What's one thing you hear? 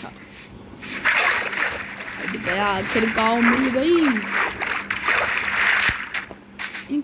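Water splashes as something wades through it.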